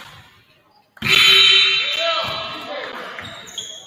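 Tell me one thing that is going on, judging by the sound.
A referee's whistle blows loudly in an echoing gym.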